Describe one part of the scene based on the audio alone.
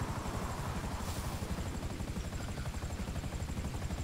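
Spray hisses as a helicopter hovers low over water.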